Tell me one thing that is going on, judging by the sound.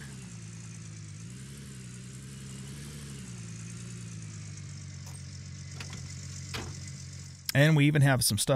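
A truck engine idles and hums steadily.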